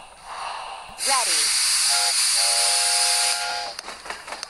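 A cartoon steam engine hisses loudly as it lets off steam.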